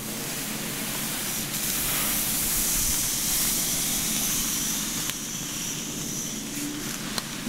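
Hands rustle softly through hair close by.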